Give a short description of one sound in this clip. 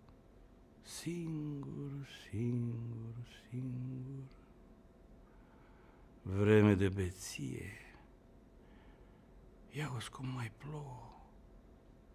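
A middle-aged man speaks calmly and slowly, close by, with long pauses.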